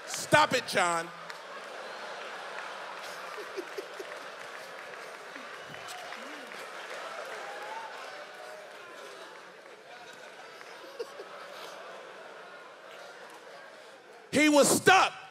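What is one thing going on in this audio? A large crowd laughs and cheers.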